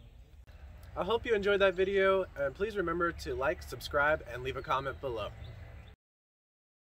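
A man speaks calmly and clearly to a nearby listener, outdoors.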